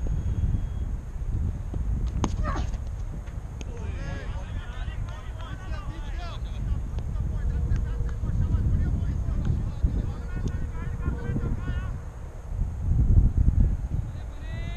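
Wind blows across an open field outdoors.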